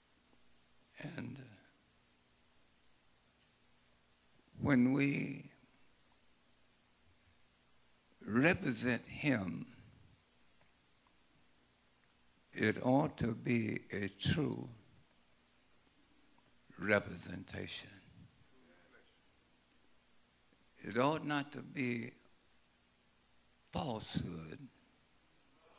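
An elderly man preaches through a microphone in short, emphatic phrases with long pauses.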